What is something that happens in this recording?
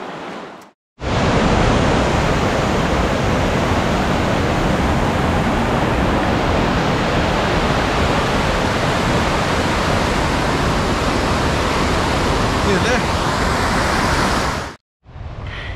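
Rushing water roars loudly over rocks.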